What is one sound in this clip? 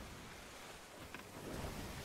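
Waves wash on the open sea.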